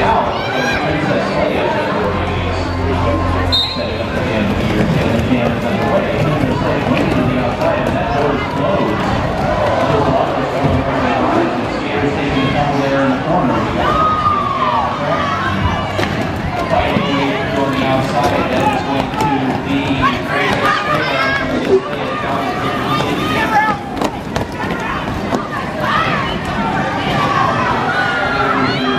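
A crowd chatters and cheers throughout a large echoing hall.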